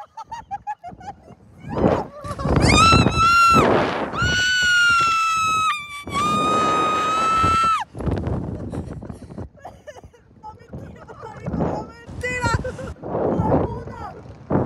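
A young man laughs and shouts close by.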